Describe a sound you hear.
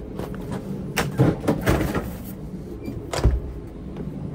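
Food containers clatter onto a metal wire shelf.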